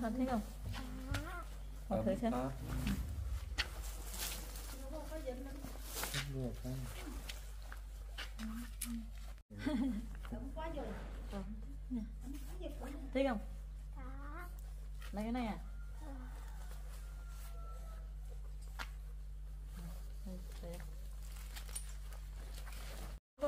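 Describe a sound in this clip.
Fabric rustles as a jacket is handled.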